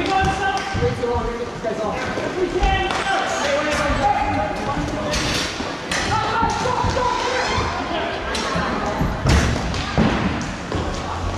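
Hockey sticks clack against a ball and each other.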